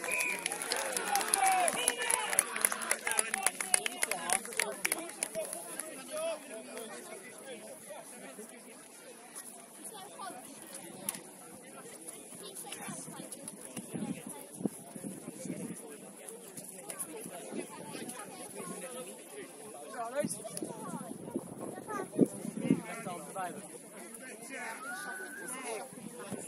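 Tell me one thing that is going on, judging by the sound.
Men and women on the sideline talk and call out outdoors in the open.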